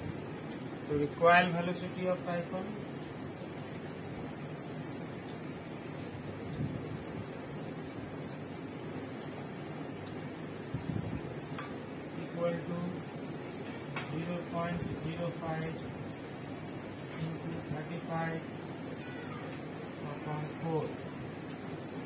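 A man speaks calmly nearby, explaining in short phrases.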